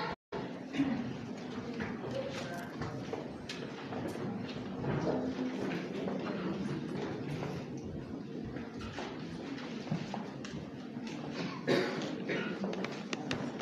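A man speaks through a microphone in a large echoing hall.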